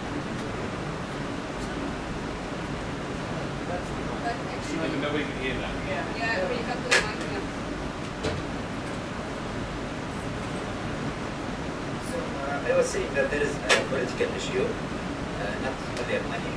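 A young man speaks into a microphone over a loudspeaker in a large room.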